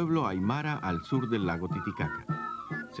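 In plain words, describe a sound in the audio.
A wooden flute plays a high melody.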